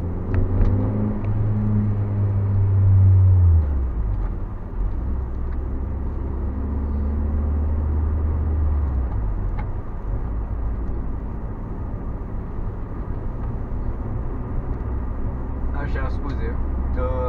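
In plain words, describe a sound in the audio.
A car engine hums steadily, its note shifting as gears change.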